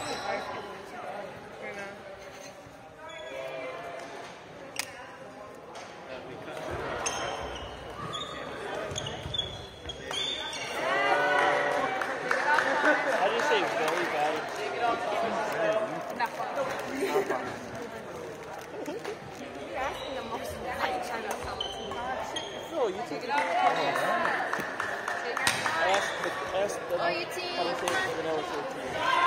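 Many young people chatter and shout in a large echoing gym.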